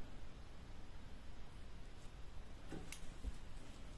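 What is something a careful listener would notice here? Small scissors snip a thread.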